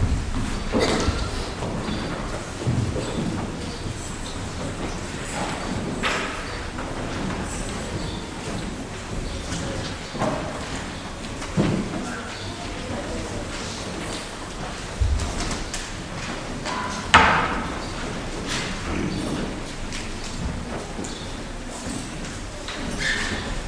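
A man speaks softly in a large echoing hall.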